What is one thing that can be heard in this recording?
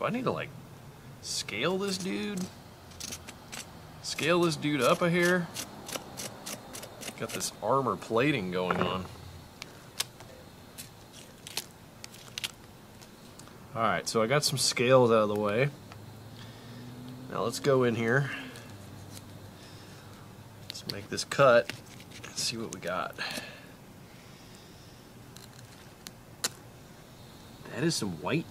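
A knife scrapes scales off a fish with quick rasping strokes.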